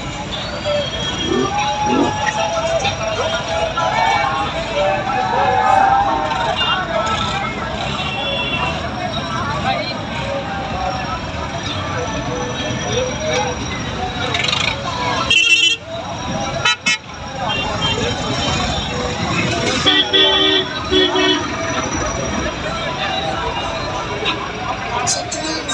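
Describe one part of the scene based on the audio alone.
A crowd of men chatter loudly all around outdoors.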